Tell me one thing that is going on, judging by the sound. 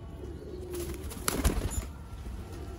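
A pigeon's wings flap in a short burst.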